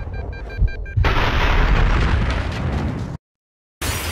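An explosion roars loudly.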